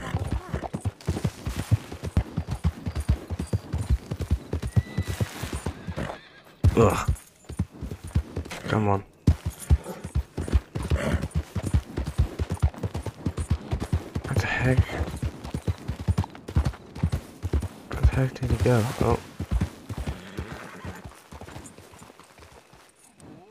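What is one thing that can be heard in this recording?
Horse hooves thud quickly on a dirt path.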